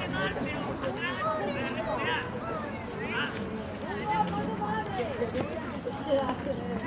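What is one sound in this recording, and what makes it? Young men shout and call to each other across an outdoor field.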